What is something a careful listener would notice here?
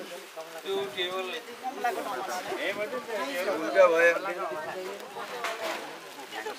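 A crowd of men and women talk over each other close by.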